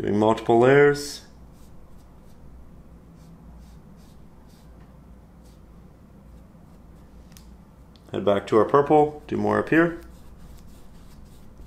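A brush strokes softly across canvas.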